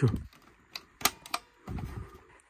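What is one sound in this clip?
A console lid pops open with a click.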